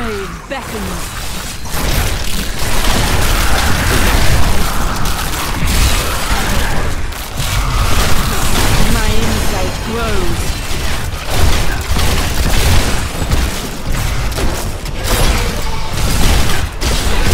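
Spells crackle and blast as a character fights a horde of monsters.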